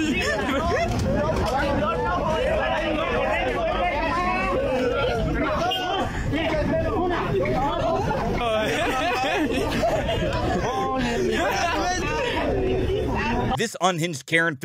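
Several men argue loudly outdoors.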